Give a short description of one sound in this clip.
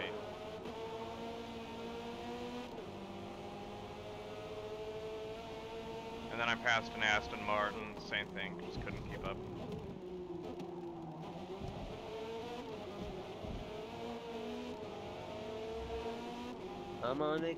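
A race car engine roars steadily, its pitch rising and falling as it shifts gears.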